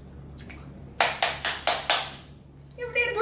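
A young girl claps her hands several times.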